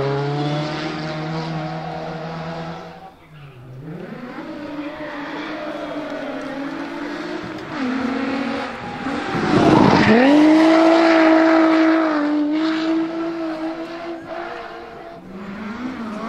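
A rally car engine roars loudly, revving hard as the car approaches and races past.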